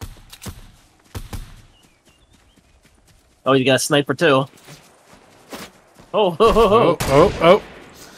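Footsteps thud quickly across grass.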